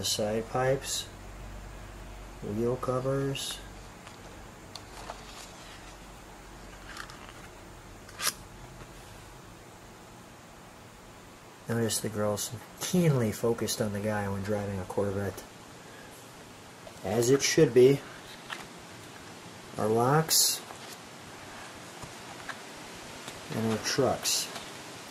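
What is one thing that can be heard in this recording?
Stiff paper pages rustle as they are turned.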